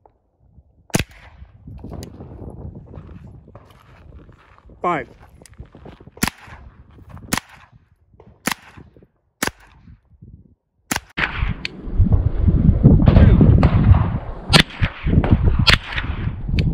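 A rifle fires sharp, echoing shots one at a time outdoors.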